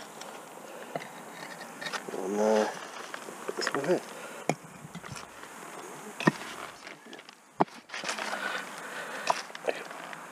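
Bricks knock and scrape as they are set down on bricks.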